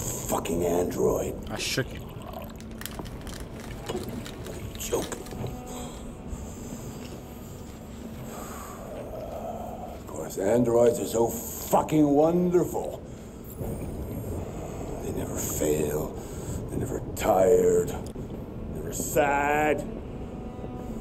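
A man speaks bitterly.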